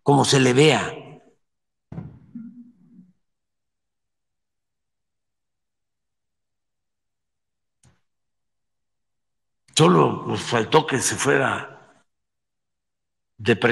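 An elderly man speaks into a microphone in short, emphatic bursts with pauses.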